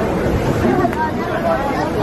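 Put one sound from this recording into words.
A crowd of adults chatters nearby.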